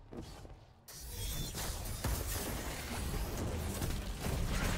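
Energy blasts crackle and roar loudly.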